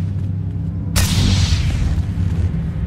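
A lightsaber clashes with a sharp crackling burst.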